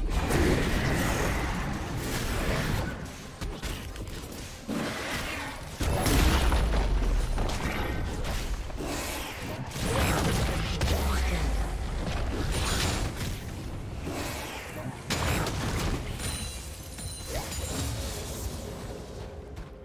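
Video game combat effects crash and blast in quick bursts.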